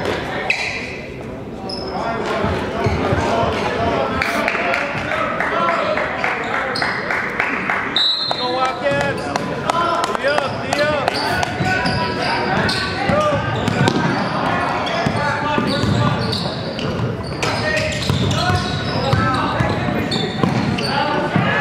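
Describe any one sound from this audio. A crowd of spectators cheers and shouts in an echoing gym.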